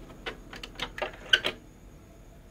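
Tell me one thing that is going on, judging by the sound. A finger presses buttons on a cassette deck with sharp clicks.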